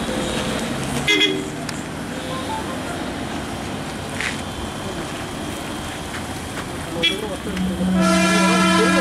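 A truck engine rumbles nearby.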